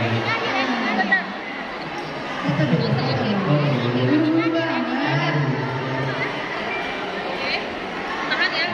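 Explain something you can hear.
A group of women sing together in a large echoing hall.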